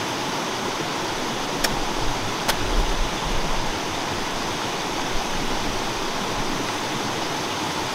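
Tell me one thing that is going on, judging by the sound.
Footsteps crunch on gravel and rocks outdoors.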